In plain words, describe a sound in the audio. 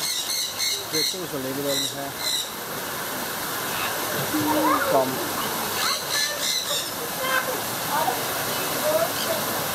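A crowd of men and women talk and call out nearby.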